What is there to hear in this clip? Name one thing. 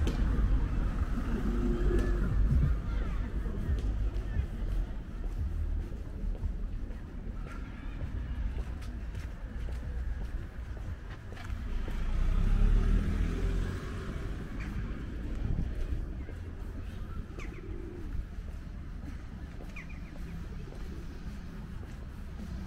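Cars drive past on a nearby street with a low rumble.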